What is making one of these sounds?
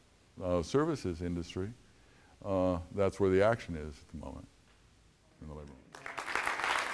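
An elderly man speaks calmly to an audience through a microphone in a large room.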